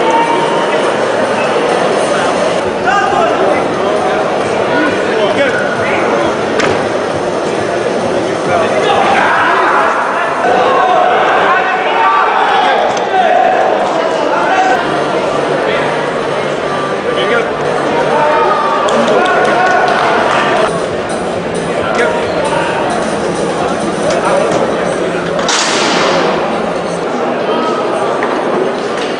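A noisy crowd cheers and shouts throughout in a large echoing hall.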